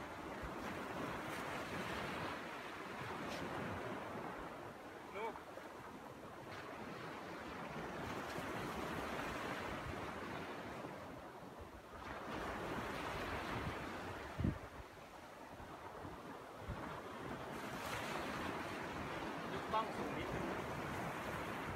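Small waves wash gently onto a sandy shore.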